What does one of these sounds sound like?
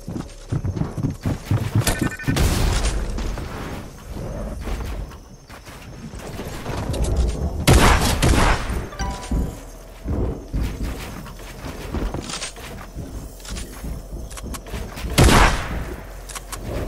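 Footsteps patter as a figure runs and climbs.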